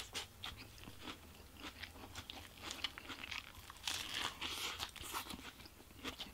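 A burger wrapper crinkles in a man's hands.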